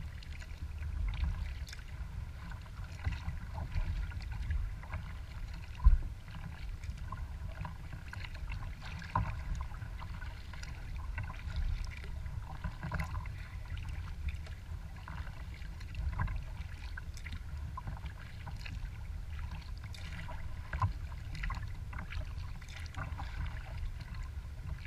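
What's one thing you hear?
Small waves lap and splash against a kayak hull.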